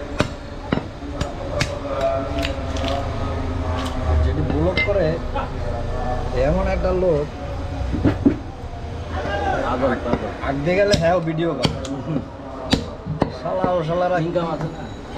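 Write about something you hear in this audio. A heavy knife chops through meat onto a wooden block.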